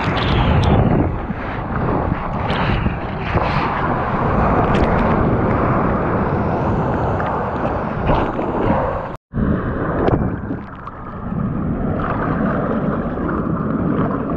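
Water splashes and sloshes against a board.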